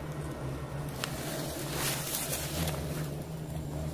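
Dry leaves and twigs rustle and crackle under a hand.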